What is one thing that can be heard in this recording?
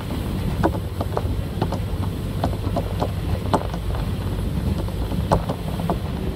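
A train rumbles along the track, heard from inside a carriage.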